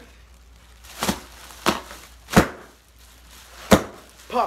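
Dull thumps hit the floor several times, close by.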